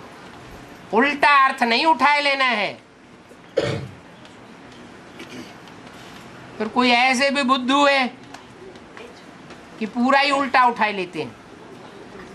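An elderly man sings short phrases close to a microphone.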